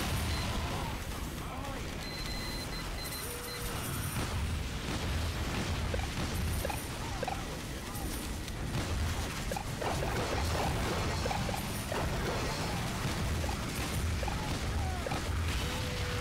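Explosions and gunshots crack and boom around in a busy firefight.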